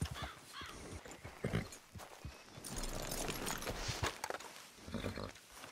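Horse hooves thud softly on grass.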